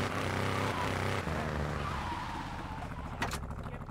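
A car engine hums as the car drives along.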